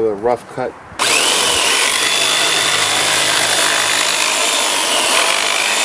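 An electric jigsaw whirs loudly and steadily.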